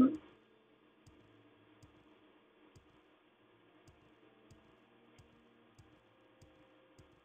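Footsteps patter lightly on a stone floor.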